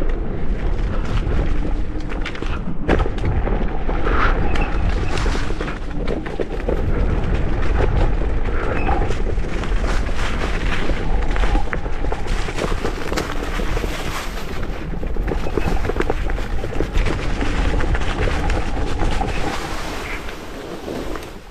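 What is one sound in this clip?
Bicycle tyres crunch over dry leaves and dirt.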